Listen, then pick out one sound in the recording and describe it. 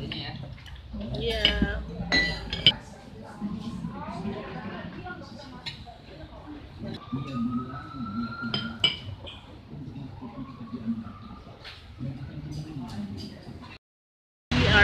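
Adult men and women chat casually around a table.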